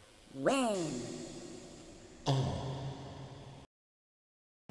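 A man laughs loudly, close into a microphone.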